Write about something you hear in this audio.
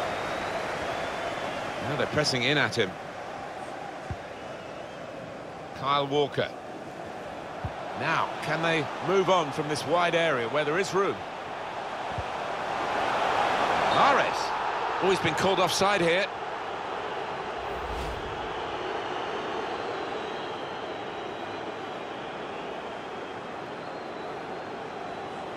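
A large stadium crowd murmurs steadily and swells into a roar, then settles.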